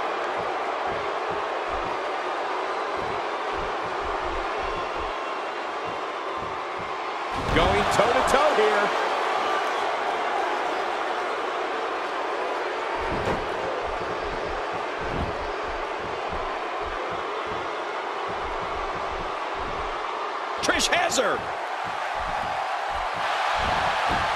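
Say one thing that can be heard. A large crowd cheers and murmurs steadily in a big arena.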